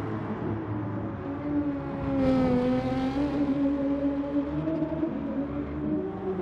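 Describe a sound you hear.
A racing car engine roars steadily, its pitch dipping and rising through a corner.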